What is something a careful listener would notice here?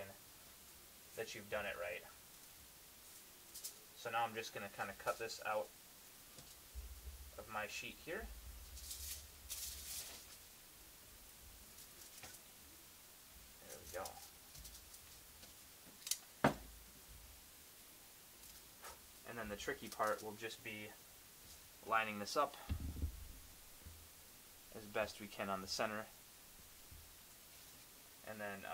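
Foil crinkles as hands fold and press it.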